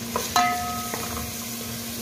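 A metal pot rings out briefly as a spoon strikes it.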